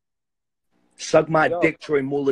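A man speaks loudly through an online call.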